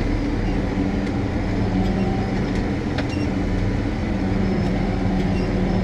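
A tractor engine drones steadily, heard from inside the cab.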